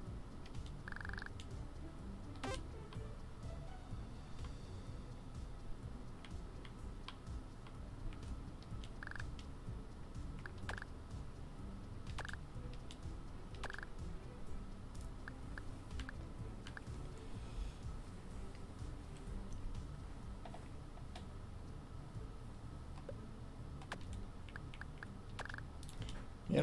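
Short electronic blips sound now and then.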